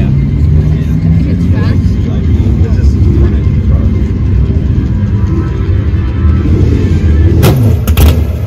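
A sports car engine idles with a deep, steady rumble.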